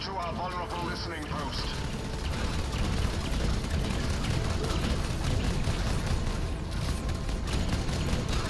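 A deep rumble of explosions rolls on.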